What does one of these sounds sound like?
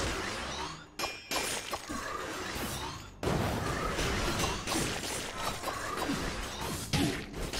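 Video game laser beams zap and whine.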